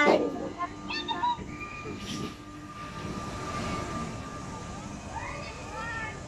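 A fairground ride's machinery hums steadily.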